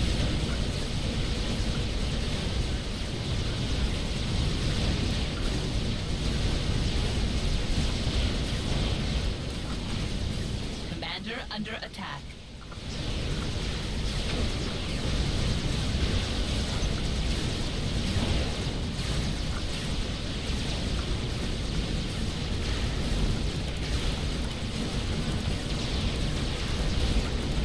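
Game battle sounds of gunfire and explosions rumble steadily.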